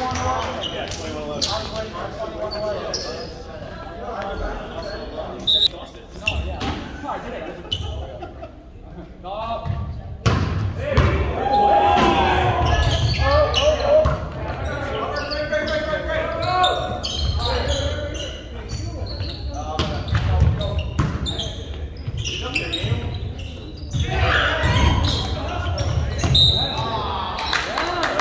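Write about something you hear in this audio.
A volleyball is hit with sharp slaps.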